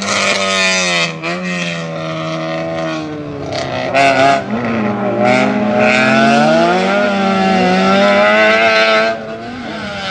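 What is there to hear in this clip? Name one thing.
A small hatchback race car engine revs hard through the gears.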